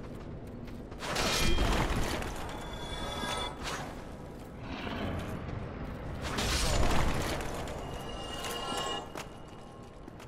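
Swords clash and ring with metallic clangs.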